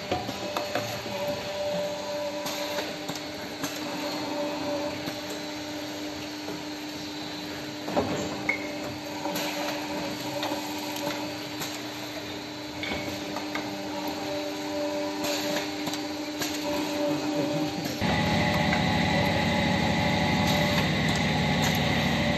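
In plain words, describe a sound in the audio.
Machinery hums steadily.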